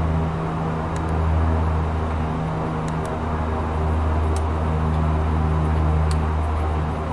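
Switches click now and then.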